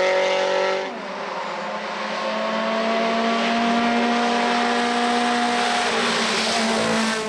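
A second rally car engine approaches, revving louder and louder.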